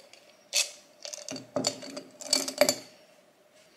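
A glass jar clinks down onto a wooden table.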